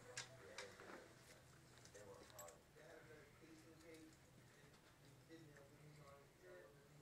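Small dogs growl and grumble playfully close by.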